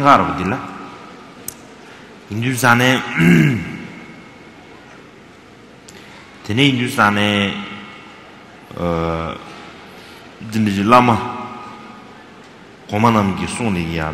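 A man speaks slowly and calmly into a microphone, in short phrases with pauses.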